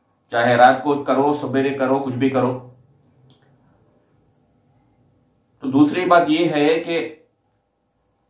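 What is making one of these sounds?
A man speaks calmly and close by, reading out.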